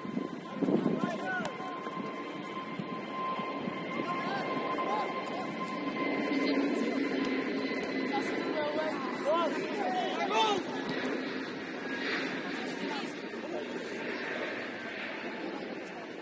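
Young men shout and call to one another at a distance outdoors.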